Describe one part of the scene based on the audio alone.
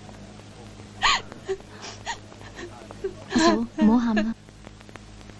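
A woman sobs and wails nearby.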